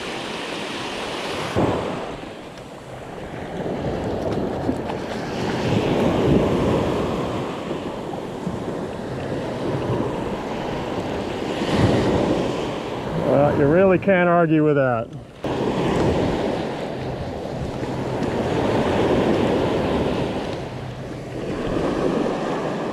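Waves wash up on the shore nearby, swelling and fading.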